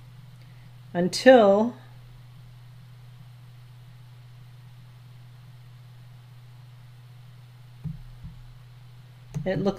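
A woman speaks briefly and calmly, close to a microphone.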